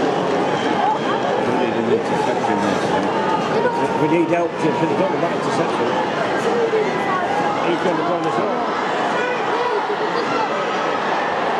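A large crowd sings and cheers loudly throughout.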